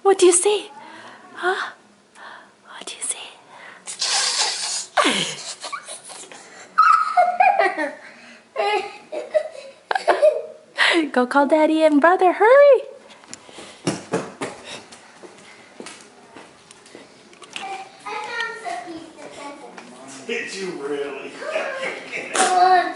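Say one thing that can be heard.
A young girl talks and laughs excitedly close by.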